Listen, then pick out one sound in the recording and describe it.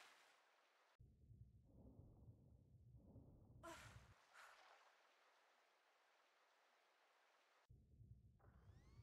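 Muffled water rumbles and bubbles underwater.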